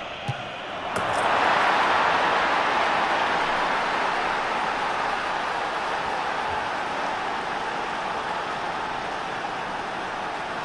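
A stadium crowd roars loudly in cheer.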